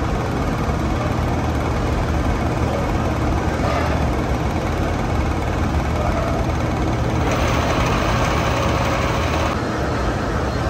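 A lathe's cutting tool turns a steel workpiece.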